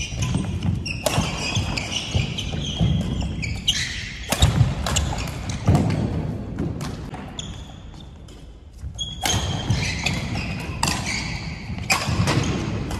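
Rackets strike a shuttlecock with sharp pops in a large echoing hall.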